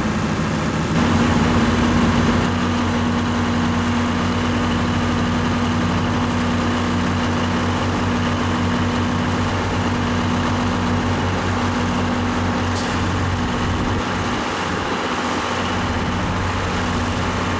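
A truck engine drones as the truck backs up slowly.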